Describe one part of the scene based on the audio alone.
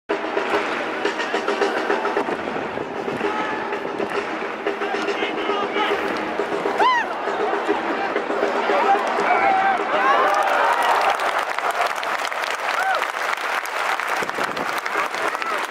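A large crowd chants and sings loudly in a big open stadium.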